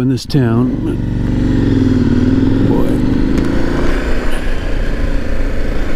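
Wind rushes past as the motorcycle rides along.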